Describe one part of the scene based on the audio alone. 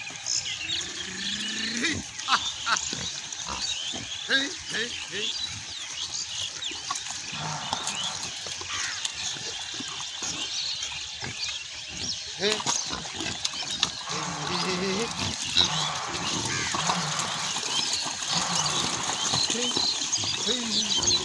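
Wild pigs grunt and snort close by.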